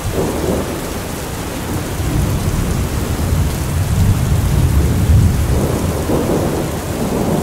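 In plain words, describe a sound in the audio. Thunder rumbles low in the distance.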